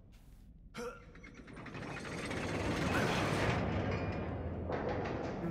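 A heavy metal chain creaks and rattles.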